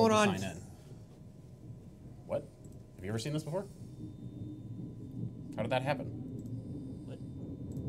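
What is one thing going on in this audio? An older man talks and laughs through a microphone.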